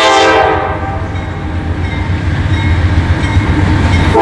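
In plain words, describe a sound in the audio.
A diesel freight locomotive rumbles as it approaches.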